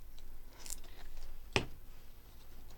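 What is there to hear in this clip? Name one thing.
A plastic cap clicks onto a bottle.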